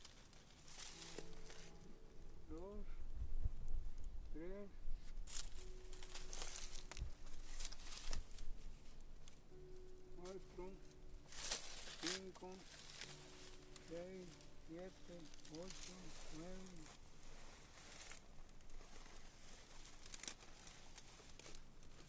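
Dry leaves and grass rustle and crackle as a man handles a tough plant.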